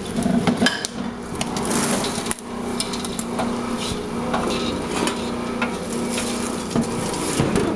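Popcorn tumbles and rustles as it is poured from a metal pot.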